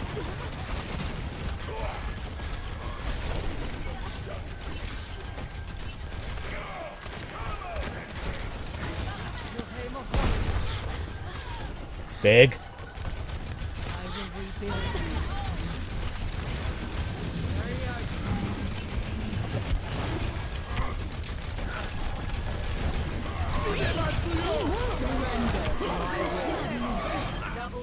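Game gunfire and ability effects crackle and whoosh.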